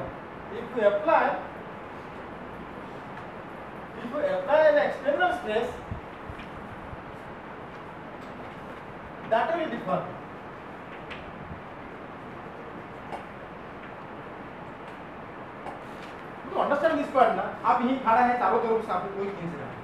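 A man lectures calmly in pauses, heard through a microphone.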